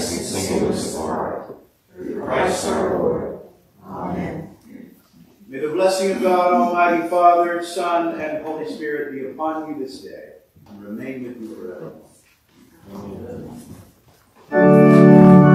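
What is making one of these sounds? A man chants prayers through a microphone in an echoing room.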